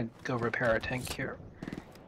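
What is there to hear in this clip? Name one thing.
Shells click into a shotgun as it is reloaded.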